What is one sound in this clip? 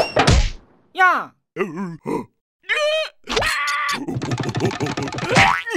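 A small creature shrieks in a high, cartoonish voice.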